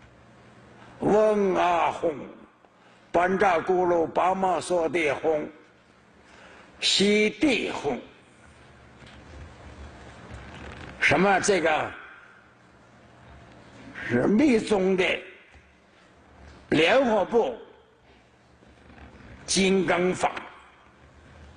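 An elderly man speaks calmly into a microphone in short phrases with pauses.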